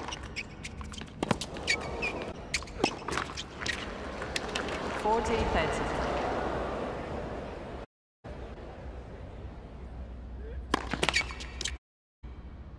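A tennis racket strikes a ball.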